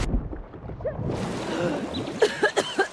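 Water swishes as someone swims.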